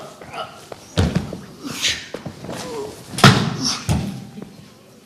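Bodies thump and scuffle on a wooden floor.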